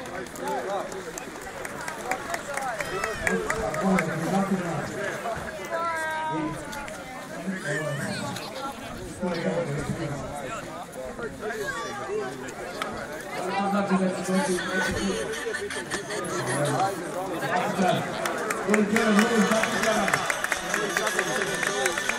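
A large crowd of men and women talks and shouts outdoors close by.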